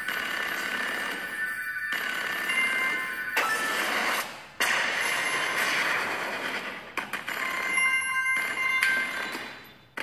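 Game sound effects of coins jingling chime rapidly.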